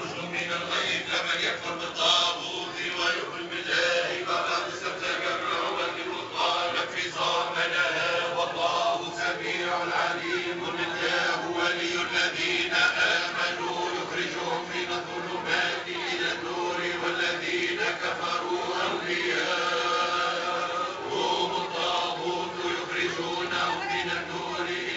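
A crowd of men and women talk and chant together close by.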